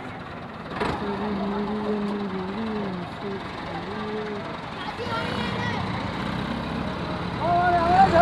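Men shout outdoors.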